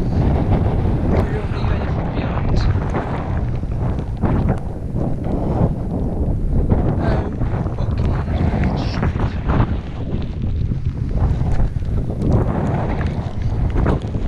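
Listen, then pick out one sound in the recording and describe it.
Strong wind buffets a close microphone with deep rumbling gusts.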